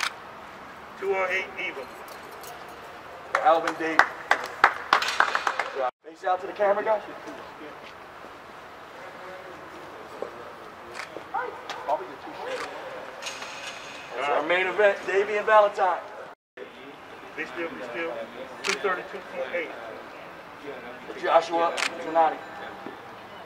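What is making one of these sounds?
A man announces loudly over a loudspeaker.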